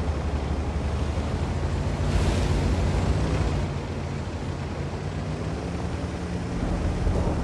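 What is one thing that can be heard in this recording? A tank's engine rumbles low as the tank drives.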